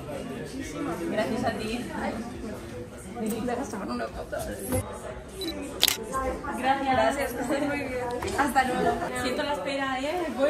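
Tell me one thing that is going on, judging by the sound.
A middle-aged woman talks warmly, close by.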